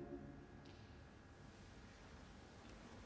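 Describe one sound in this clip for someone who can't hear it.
A choir holds a final chord that fades away in a large echoing hall.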